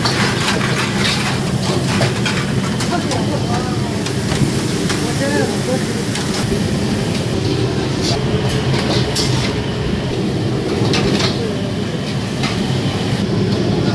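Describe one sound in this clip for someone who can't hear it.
A metal ladle scrapes and clanks against a wok.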